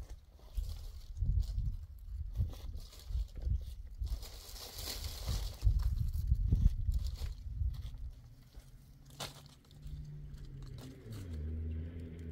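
Dry leaves crunch underfoot.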